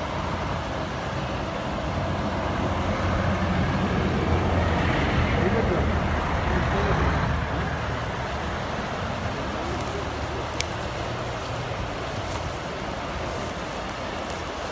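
A river rushes loudly close by.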